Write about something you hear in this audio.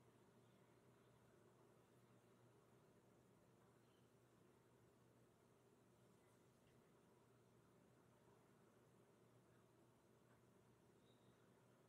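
Gloved fingers rub softly against a metal watch.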